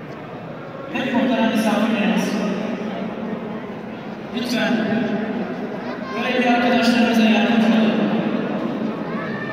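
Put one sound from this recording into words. A crowd of men chants loudly together in a large echoing hall.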